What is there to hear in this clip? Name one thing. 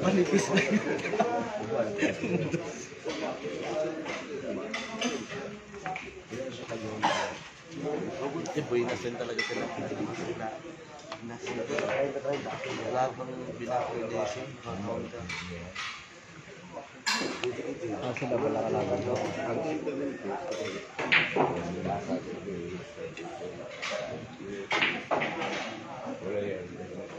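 Several men talk and murmur nearby in a lively room.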